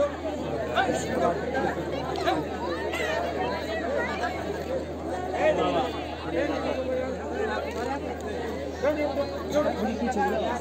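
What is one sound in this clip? A crowd of women chatter and murmur close by, outdoors.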